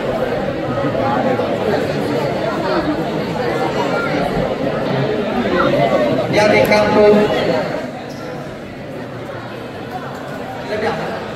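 A crowd of children and adults chatters loudly in a large echoing hall.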